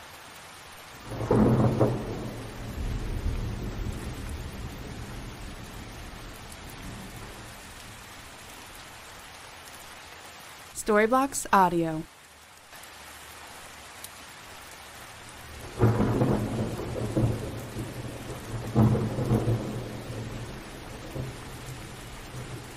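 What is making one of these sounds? Thunder rumbles loudly and rolls away in the distance.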